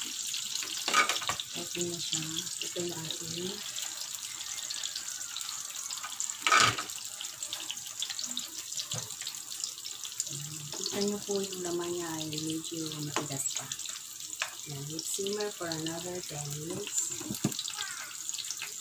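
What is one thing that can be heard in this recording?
A metal pot lid clanks.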